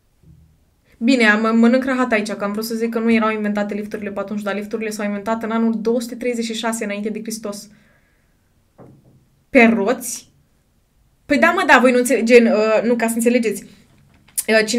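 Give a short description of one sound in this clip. A young woman speaks into a close microphone with animation.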